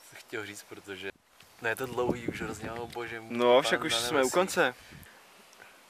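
A young man talks calmly and closely.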